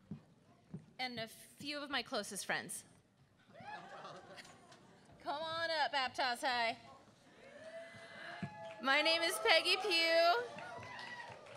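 A middle-aged woman speaks into a microphone on an echoing stage.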